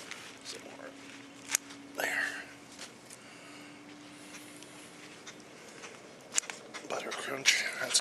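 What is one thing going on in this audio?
Lettuce leaves rustle and snap as they are picked by hand.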